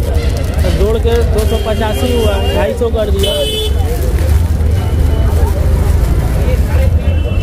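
Plastic packets crinkle as they are handled.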